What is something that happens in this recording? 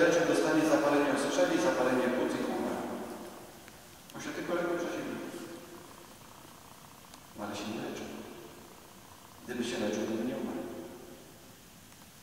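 A man speaks calmly into a microphone, his voice echoing in a large hall.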